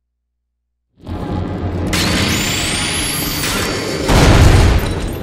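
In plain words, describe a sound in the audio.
A power grinder whines as it cuts through a metal lock.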